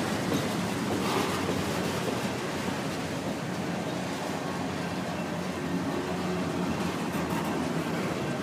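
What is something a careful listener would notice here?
A railway crossing bell rings steadily.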